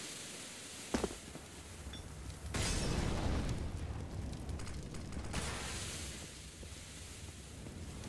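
A smoke grenade hisses steadily nearby.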